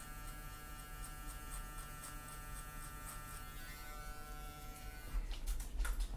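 Electric hair clippers buzz steadily.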